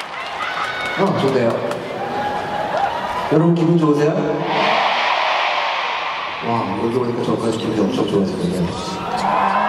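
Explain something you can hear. A young man sings into a microphone through loud concert speakers.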